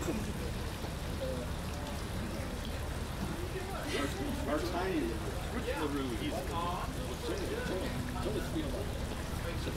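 A band plays acoustic guitars and upright bass outdoors.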